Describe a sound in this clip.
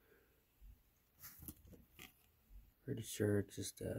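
Trading cards rustle and slide between fingers.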